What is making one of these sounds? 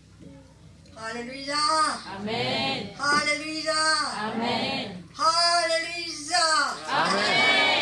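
An elderly woman sings loudly through a microphone.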